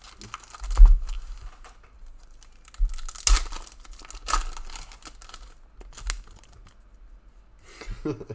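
Foil card packs crinkle as they are torn open.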